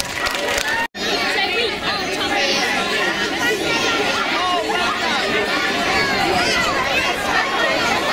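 A large outdoor crowd of men, women and children chatters with many voices.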